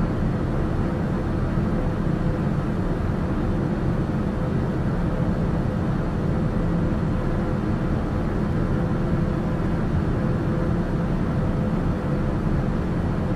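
A small aircraft's engine drones steadily in cruise flight, heard from inside the cockpit.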